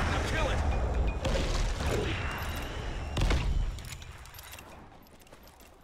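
Gunshots crack.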